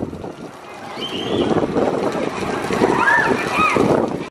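Riders scream on a roller coaster.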